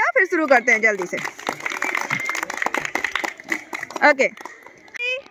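Children clap their hands in rhythm.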